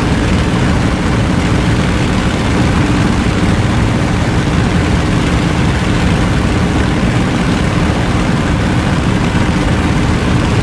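A propeller plane's engine drones loudly and steadily.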